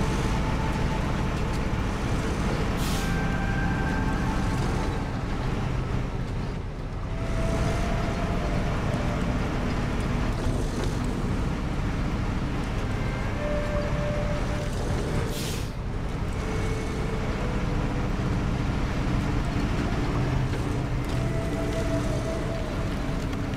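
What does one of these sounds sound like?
A heavy truck engine rumbles and labours steadily.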